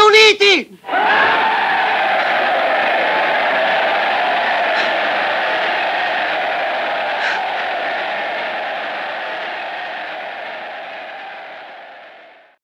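A huge crowd cheers and roars, then slowly fades.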